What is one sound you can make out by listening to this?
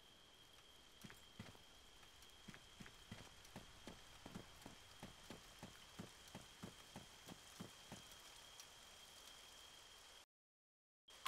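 Footsteps crunch steadily over dry ground.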